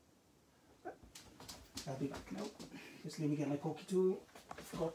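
Footsteps approach across a wooden floor.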